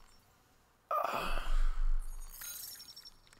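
A short electronic chime sounds.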